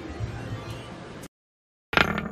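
A slot machine plays electronic chimes as its reels spin.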